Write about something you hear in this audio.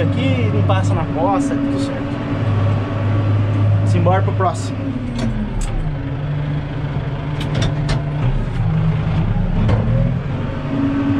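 The tractor cab rattles and knocks as it rolls over rough ground.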